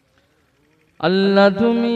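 A young man sings loudly into a microphone in a melodic chanting voice.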